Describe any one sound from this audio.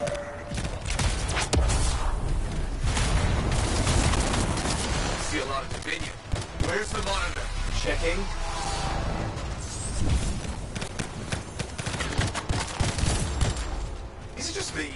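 Gunfire and blasts crack and boom in quick bursts.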